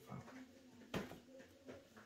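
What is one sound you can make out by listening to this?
Cards slap softly onto a play mat.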